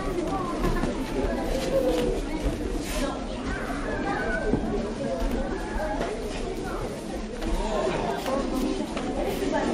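A crowd of children and adults chatter in a large echoing hall.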